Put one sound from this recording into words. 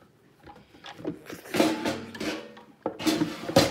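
A woman coughs and splutters close by.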